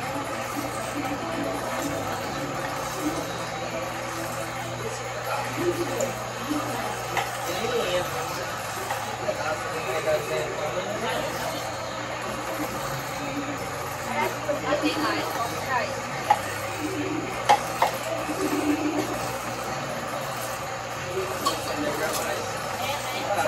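A meat grinder's motor hums steadily.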